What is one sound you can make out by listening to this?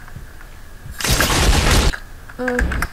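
A bicycle crashes with a loud smash.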